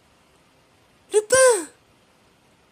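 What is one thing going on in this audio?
A woman speaks briefly with animation.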